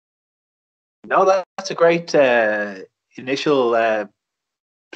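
A man speaks loudly and with animation, close by.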